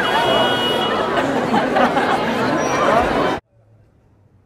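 A large crowd cheers and chatters loudly outdoors.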